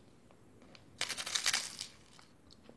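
A plastic wrapper crinkles briefly.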